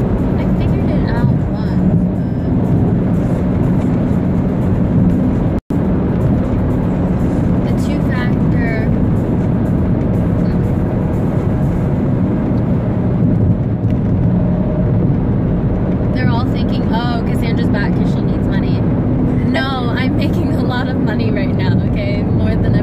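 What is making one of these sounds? A car engine rumbles steadily inside a moving car.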